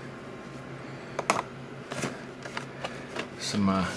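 A cardboard box scrapes as it is slid off a wooden shelf.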